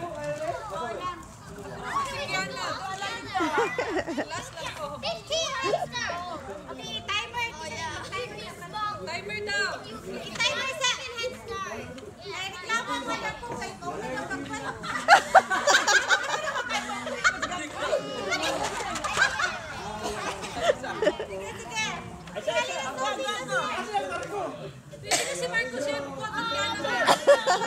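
Small children chatter and call out excitedly.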